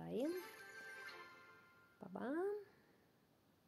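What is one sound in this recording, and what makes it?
A magical shimmering chime rings out as a cloud of sparkles clears.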